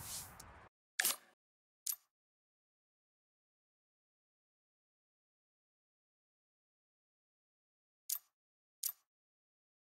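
Short interface beeps sound as a menu is browsed.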